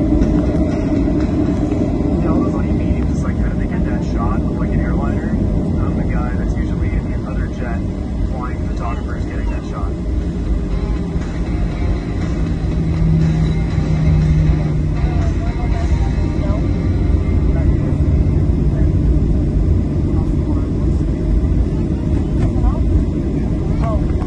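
Jet engines roar steadily as an airliner taxis.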